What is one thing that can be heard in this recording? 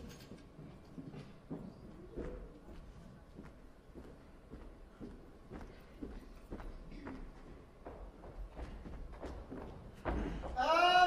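Footsteps tap across a wooden stage.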